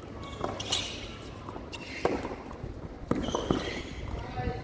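A tennis ball is struck hard with a racket, back and forth in a rally.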